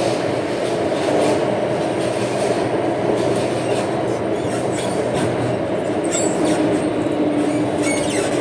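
A train rumbles steadily along the track, heard from inside the carriage.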